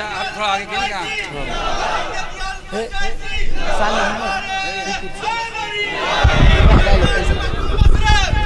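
A man sings out with feeling through a microphone and loudspeakers.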